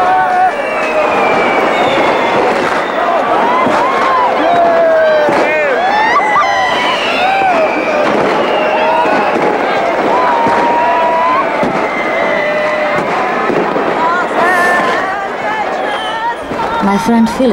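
A large outdoor crowd cheers and whistles shrilly.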